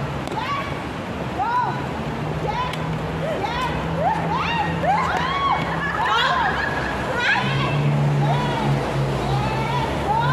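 A young woman squeals and laughs while jumping.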